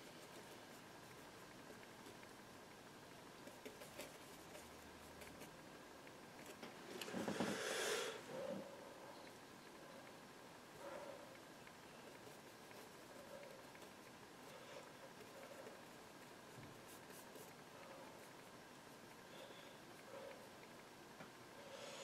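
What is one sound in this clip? A brush dabs and scrapes softly on canvas.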